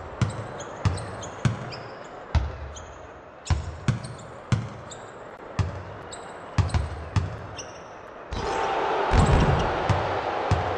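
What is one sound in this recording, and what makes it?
A basketball bounces on a hardwood court again and again.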